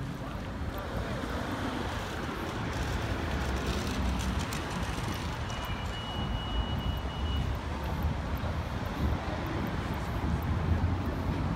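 Cars drive past on a cobbled road.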